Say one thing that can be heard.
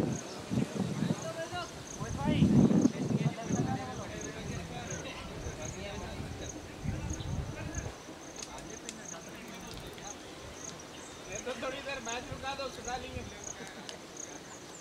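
Men call out across an open field in the distance.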